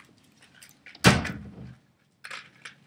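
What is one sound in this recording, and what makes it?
Plastic packaging crinkles and knocks in a hand.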